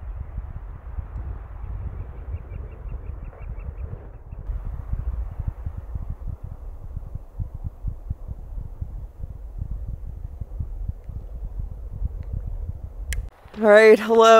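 Wind blows and rumbles across an open space outdoors.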